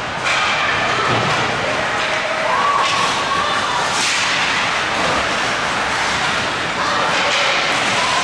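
Ice skates scrape and swish across the ice in a large echoing rink.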